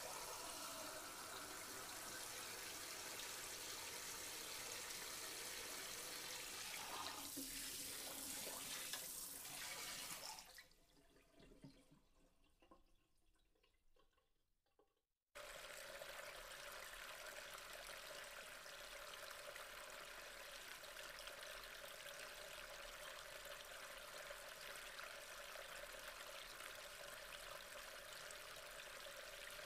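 Water bubbles and churns steadily.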